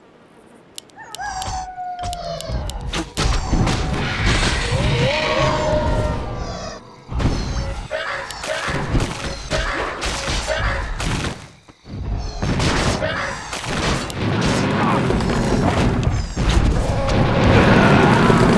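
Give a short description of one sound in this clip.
Battle sounds of spells and weapons clash loudly.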